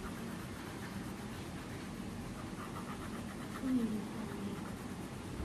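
A crayon scratches softly on paper.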